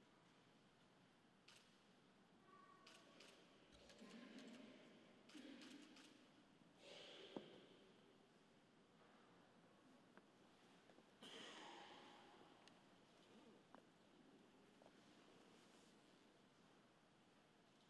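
A crowd shuffles and coughs softly in a large echoing hall.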